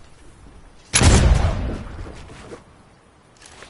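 Wooden walls are built with quick clattering thuds.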